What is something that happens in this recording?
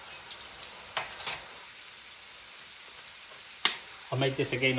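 A metal spoon clinks against a pan.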